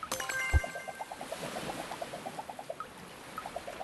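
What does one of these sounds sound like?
Quick high blips tick rapidly in a cheerful chatter.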